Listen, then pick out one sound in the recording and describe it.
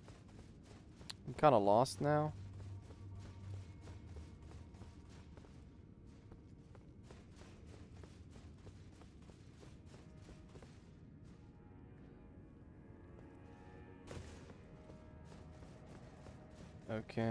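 Armoured footsteps clatter quickly on stone.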